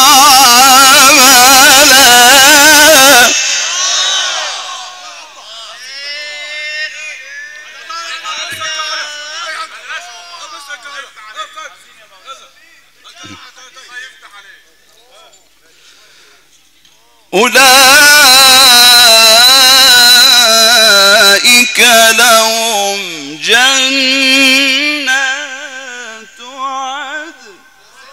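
A man chants loudly through a microphone in a large echoing hall.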